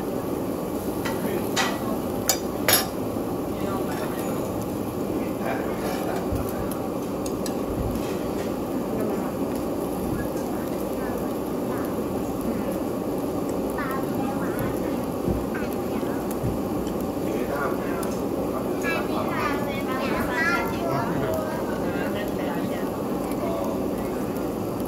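Meat sizzles on a wire grill over charcoal.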